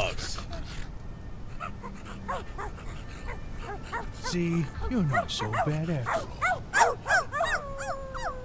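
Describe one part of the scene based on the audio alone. Dogs whine and yelp in quick, high chirps.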